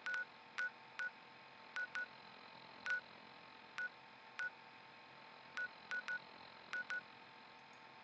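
Short electronic clicks sound as a game map cursor moves from place to place.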